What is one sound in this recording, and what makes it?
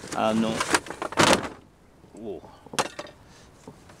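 Plastic crates knock and clatter against each other.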